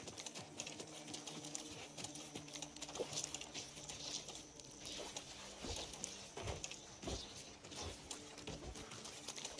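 Footsteps crunch along a path.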